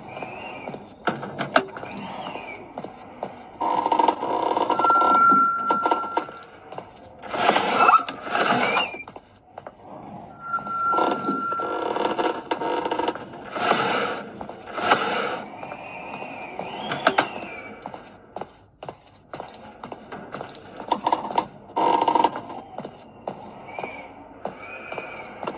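Eerie game sounds play from a tablet's small speaker.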